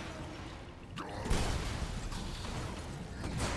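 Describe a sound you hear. A heavy explosion booms.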